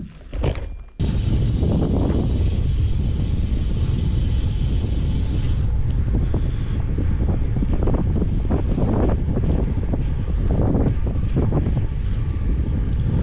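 Wind rumbles and buffets loudly outdoors.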